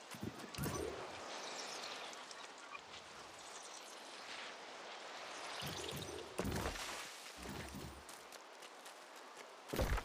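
Leaves and plants rustle as they are picked.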